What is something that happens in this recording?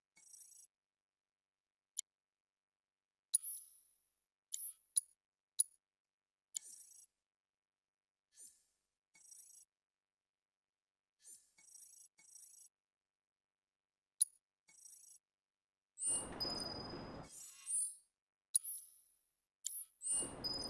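Short electronic menu blips and chimes sound again and again.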